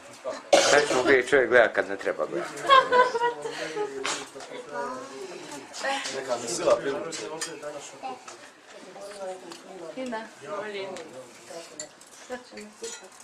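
Several men talk together close by.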